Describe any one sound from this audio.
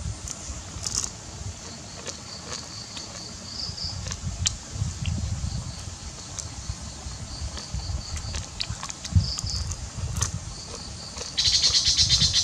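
Crab shells crack and snap in a boy's fingers.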